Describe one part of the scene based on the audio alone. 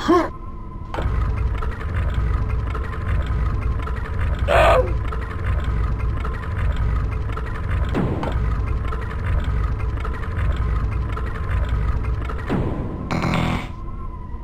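A game's lift platform rumbles low as it rises.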